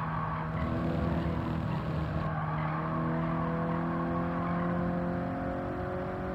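Tyres rumble over the road surface.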